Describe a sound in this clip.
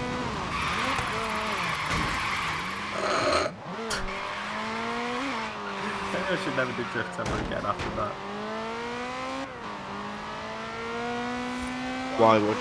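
A sports car engine revs high and shifts through gears.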